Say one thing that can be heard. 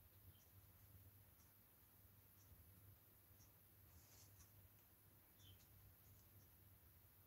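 A paintbrush softly dabs and brushes against a surface.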